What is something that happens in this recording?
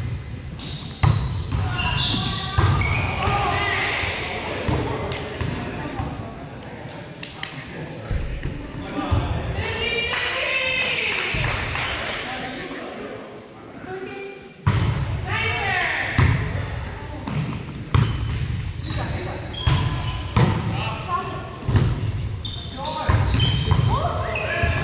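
Hands strike a volleyball with sharp slaps in a large echoing gym.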